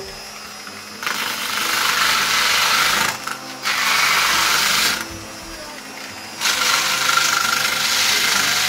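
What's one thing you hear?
A power sander whirs loudly against a wall in bursts.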